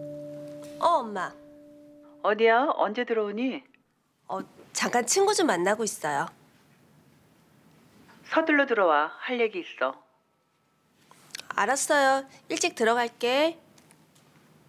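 A young woman talks on a phone nearby, with animation.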